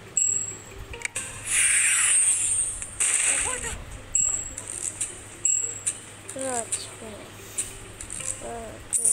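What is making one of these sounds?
Short cartoonish game sound effects chime and whoosh again and again.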